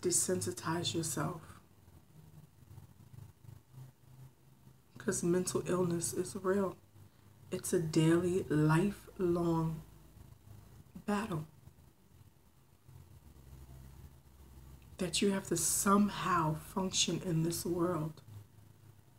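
A woman speaks calmly and close up, in bursts with pauses.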